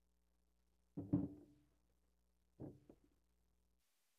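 Musical equipment knocks and thumps on a wooden stage.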